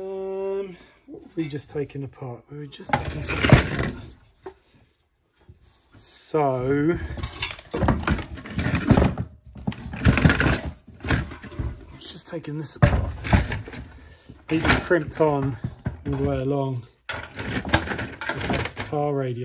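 A thin metal casing clanks and rattles as hands turn it over.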